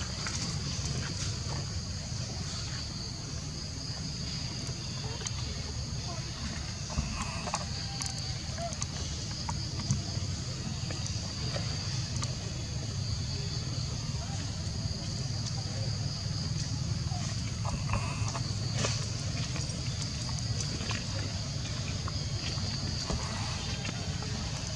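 Monkeys' feet rustle on dry leaves and gravel.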